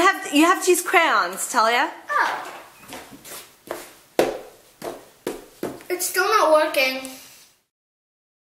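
A young girl talks calmly close by.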